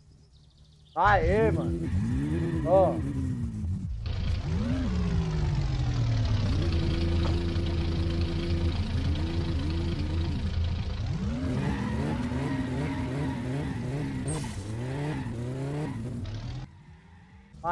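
A car engine idles and revs up and down.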